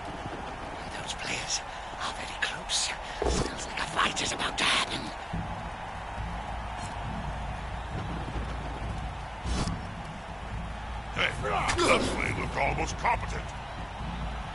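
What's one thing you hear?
Armoured players clash and thud against each other.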